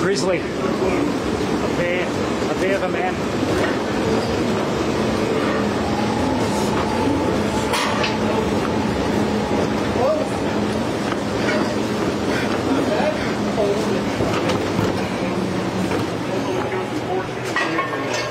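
Footsteps thud on the moving steps of a stair machine.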